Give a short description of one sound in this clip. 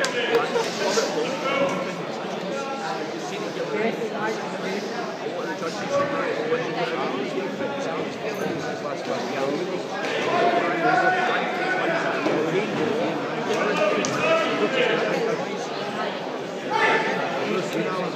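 A crowd shouts and cheers throughout in a large echoing hall.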